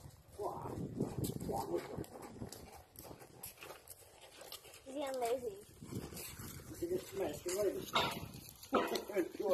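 A horse's hooves thud softly on sandy ground.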